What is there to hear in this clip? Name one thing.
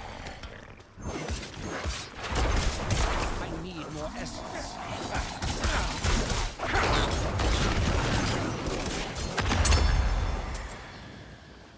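Weapons slash and strike monsters in rapid bursts.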